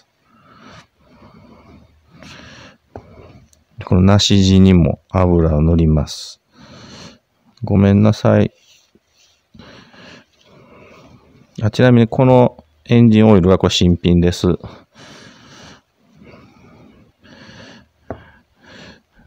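Metal wrenches clink softly as they are set down on a table.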